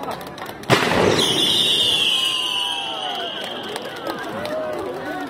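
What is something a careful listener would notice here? A firework whistles shrilly and slowly fades.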